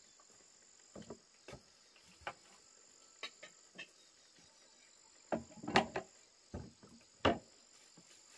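Metal pots clank and knock together.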